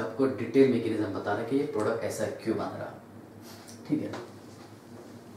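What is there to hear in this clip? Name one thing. A man speaks steadily close by, explaining.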